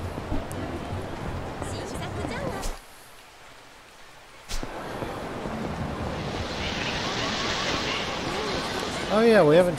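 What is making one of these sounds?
Quick footsteps slap on pavement.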